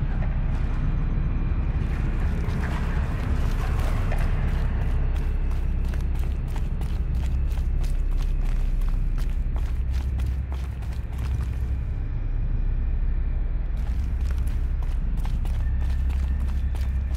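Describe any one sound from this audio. Footsteps crunch on snow as a woman walks.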